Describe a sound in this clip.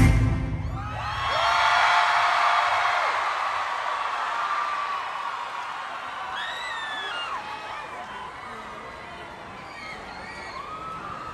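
A large crowd screams and cheers in a big echoing hall.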